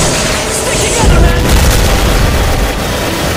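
A heavy tank engine rumbles low.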